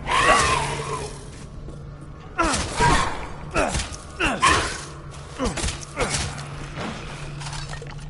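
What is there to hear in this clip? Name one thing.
A monster growls and shrieks close by.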